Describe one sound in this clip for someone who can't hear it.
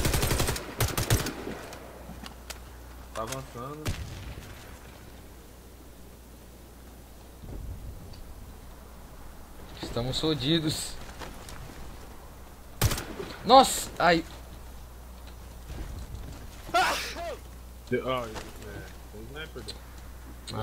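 A rifle fires short bursts of shots.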